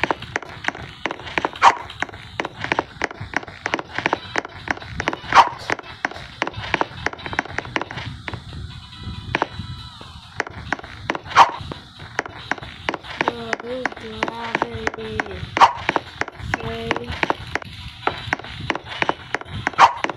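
Quick footsteps patter on wooden boards.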